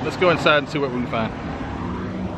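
A middle-aged man talks casually, close to the microphone.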